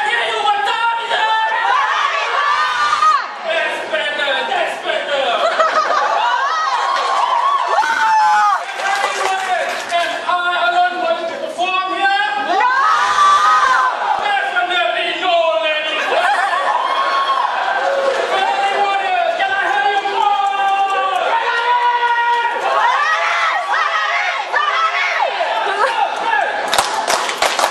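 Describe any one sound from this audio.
A crowd sings and chants loudly in a large echoing hall.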